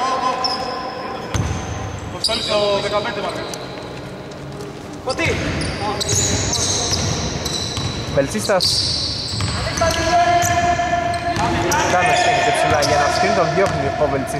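Young men shout and call out to one another across the court.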